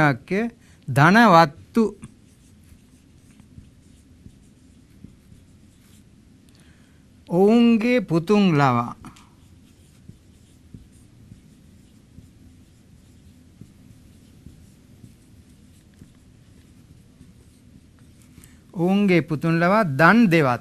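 An elderly man speaks calmly and slowly, as if teaching.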